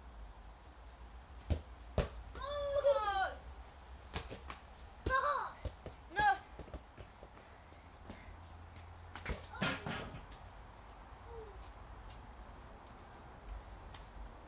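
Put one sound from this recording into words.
A trampoline mat thumps and creaks under bouncing feet.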